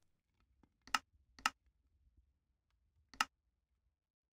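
Game menu buttons click softly a few times.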